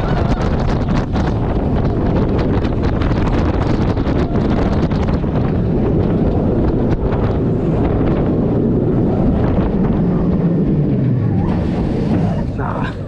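A ride car rumbles and rattles loudly along its track.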